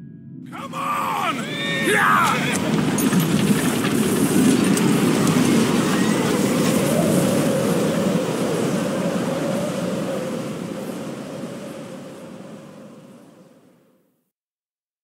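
A strong wind roars through trees outdoors.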